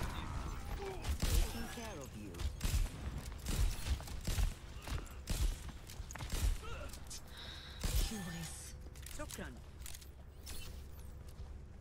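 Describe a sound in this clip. Sniper rifle shots crack sharply.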